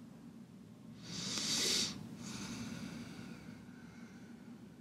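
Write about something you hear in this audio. A man breathes out heavily close by.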